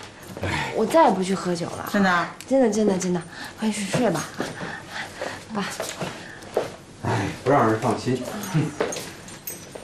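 A middle-aged woman speaks pleadingly, close by.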